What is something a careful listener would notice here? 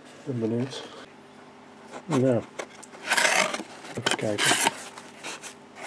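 A cardboard box flap scrapes open.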